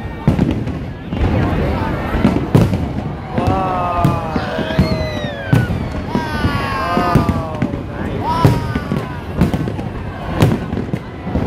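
Fireworks boom and thud loudly overhead, again and again.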